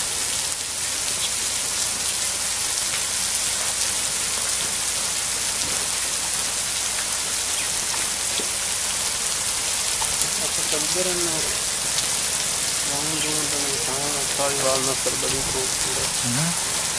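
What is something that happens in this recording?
Water spatters onto the backs of animals and the wet floor.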